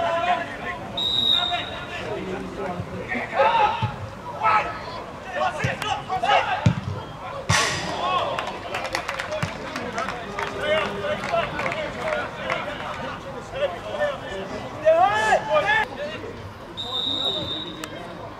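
A referee's whistle blows short, shrill blasts.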